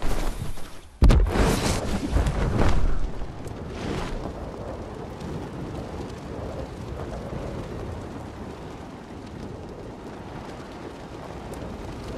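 Wind rushes past during a glide through the air.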